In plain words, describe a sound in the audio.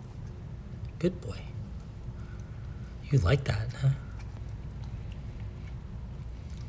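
A dog crunches and chews dry kibble close by.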